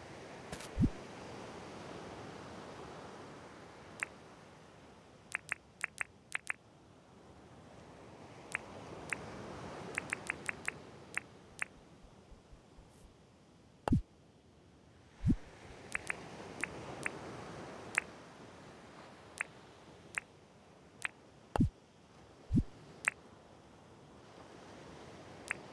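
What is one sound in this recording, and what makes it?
Short game menu clicks tick as items are picked.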